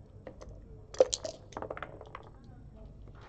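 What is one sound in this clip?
Dice rattle in a cup and clatter onto a board.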